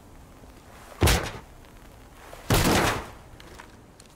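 A heavy metal door bangs open.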